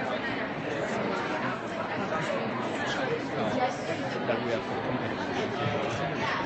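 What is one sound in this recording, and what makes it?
A crowd of young people chatters loudly all around.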